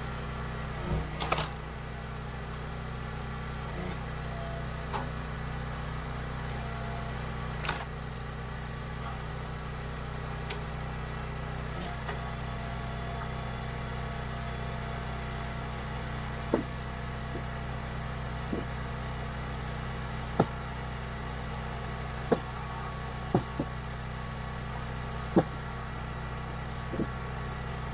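A gas engine hums steadily nearby.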